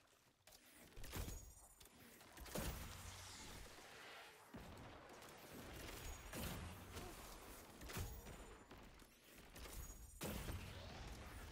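A weapon fires bolts with sharp twangs.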